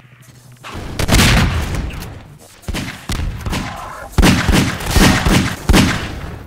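Pistol shots ring out rapidly, echoing off hard walls.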